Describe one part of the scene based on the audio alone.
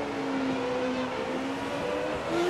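A racing car engine revs back up, rising in pitch.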